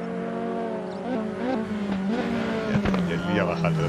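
A race car engine blips and growls as the driver shifts down for a corner.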